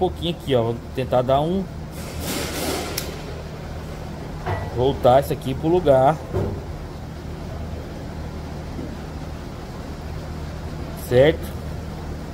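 Metal pliers click against a small steel ring.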